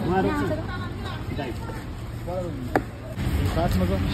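A knife taps on a chopping board.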